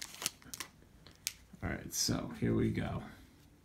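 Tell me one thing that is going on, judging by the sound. A foil card wrapper crinkles as it is torn open.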